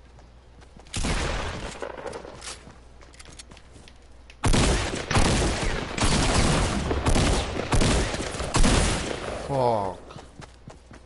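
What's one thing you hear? Gunfire bursts loudly in quick volleys.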